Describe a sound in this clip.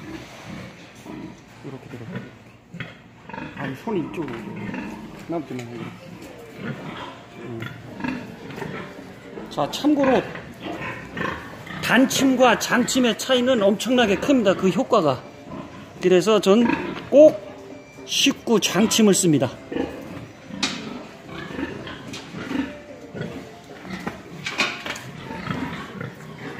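Pigs grunt and squeal close by.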